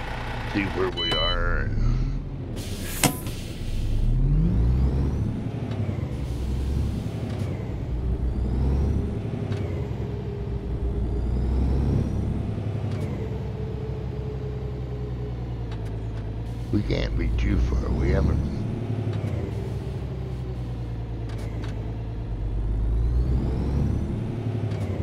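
A truck engine rumbles low and steady as the truck drives slowly.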